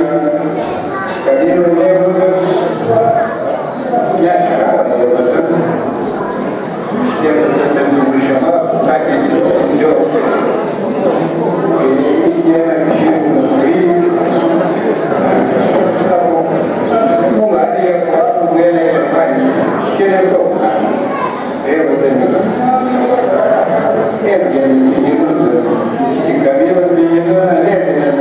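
An elderly man talks with animation, heard through loudspeakers in a room.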